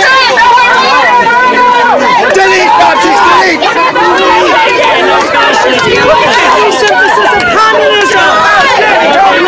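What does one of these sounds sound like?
A crowd of men and women talk loudly over one another close by, outdoors.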